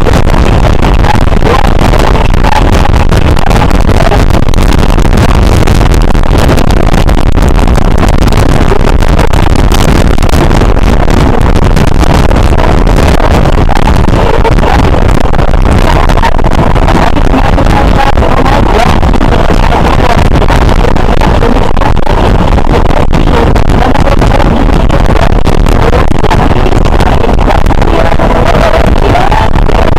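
Strong wind roars loudly past the microphone.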